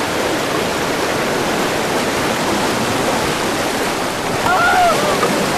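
Whitewater rushes and splashes loudly.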